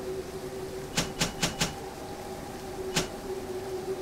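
Short menu clicks sound in quick succession.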